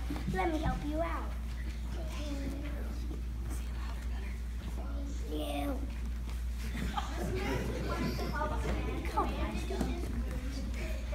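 Young children talk and giggle close by.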